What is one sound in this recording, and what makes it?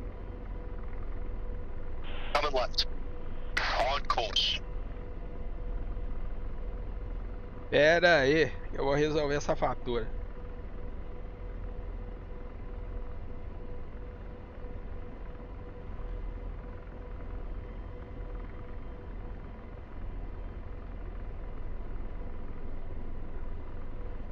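A helicopter's engine and rotor hum steadily and low.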